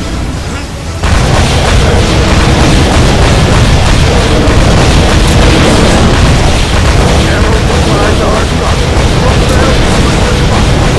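Heavy guns fire in rapid bursts.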